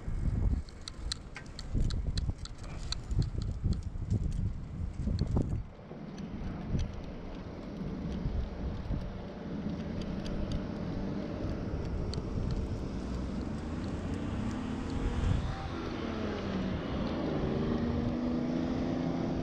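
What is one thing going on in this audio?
Cars pass by on a road nearby.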